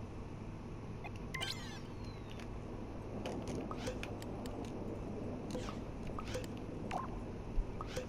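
Short electronic blips and chimes sound now and then.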